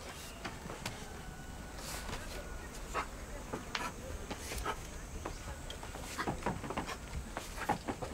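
Wooden ladder rungs knock and creak as a man climbs down.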